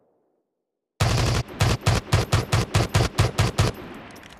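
A gun fires in rapid bursts of loud shots.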